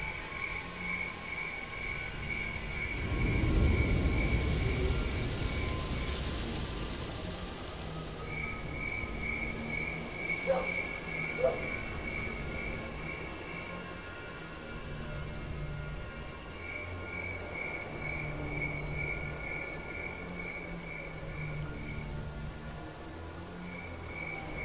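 Birds chirp repeatedly in the distance.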